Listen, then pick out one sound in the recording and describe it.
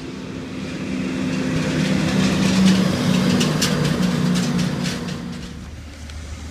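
Another heavy truck roars by close up.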